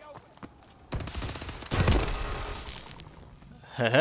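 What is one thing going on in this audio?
Rapid gunshots crack loudly.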